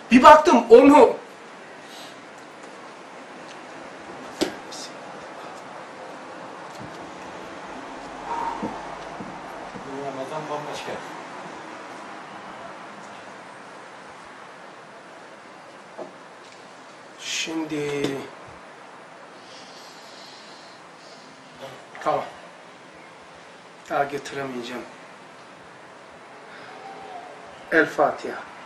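An older man speaks calmly and haltingly, close by.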